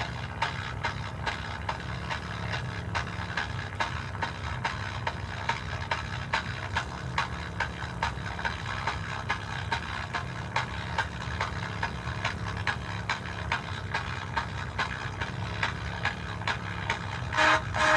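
A loudspeaker drones with a steady low hum.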